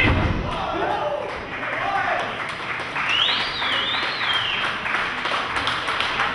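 A small crowd of men shouts and cheers loudly.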